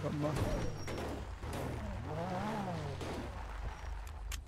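A car engine revs and whines as it drives over rough ground.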